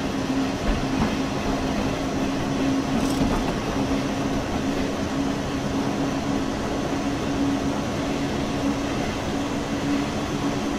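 Train wheels rumble and clatter over the track.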